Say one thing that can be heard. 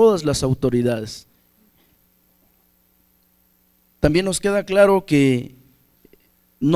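A man speaks emphatically into a microphone through a loudspeaker, with pauses.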